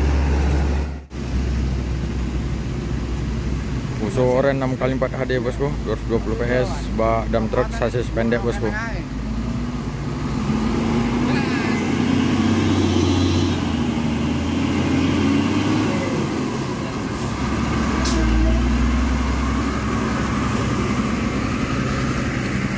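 A heavy truck engine rumbles and strains steadily close by.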